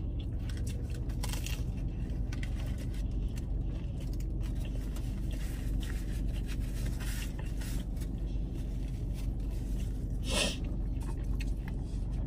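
Paper wrappers rustle close by.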